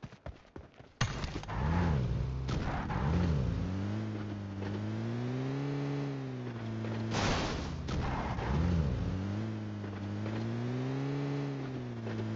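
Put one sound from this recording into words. A car engine starts and revs up and down as the car drives off.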